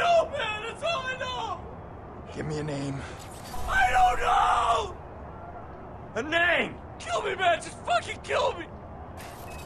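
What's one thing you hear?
A young man pleads desperately, shouting.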